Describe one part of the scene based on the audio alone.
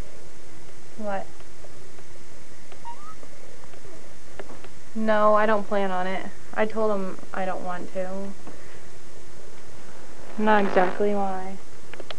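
A teenage girl talks into a phone close by.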